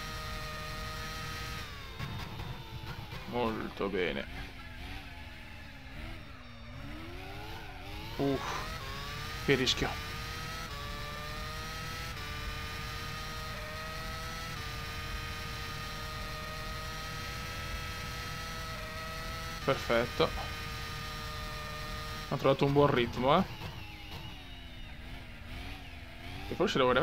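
A racing car engine whines at high revs, dropping in pitch under braking and rising again as it speeds up.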